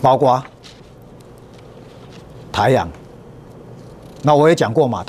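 A middle-aged man speaks calmly into a microphone in short bursts.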